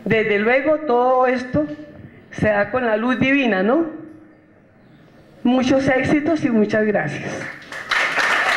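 An older woman speaks with animation through a microphone in a large echoing hall.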